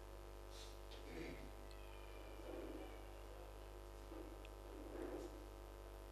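A young man murmurs softly into a microphone.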